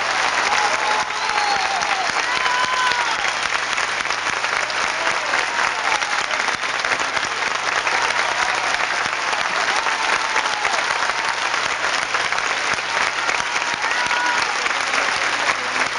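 A crowd whistles and shouts.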